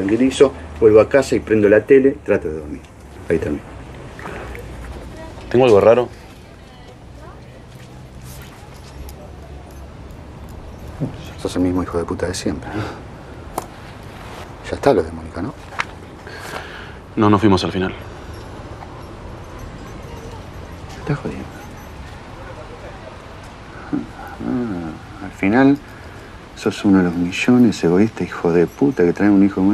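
An older man speaks in a low voice nearby.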